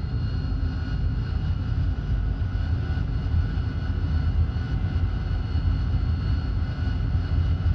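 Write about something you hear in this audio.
A jet engine roars steadily with a deep rumble.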